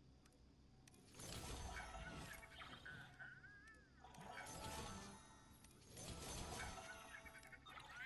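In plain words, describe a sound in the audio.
Short electronic jingles sound as purchases are made.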